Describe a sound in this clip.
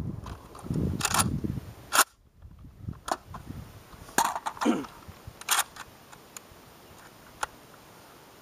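Metal parts of a rifle click and clack.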